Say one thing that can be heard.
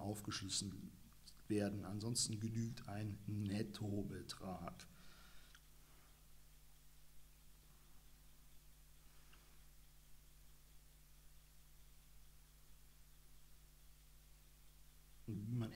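A young man reads aloud close to a microphone.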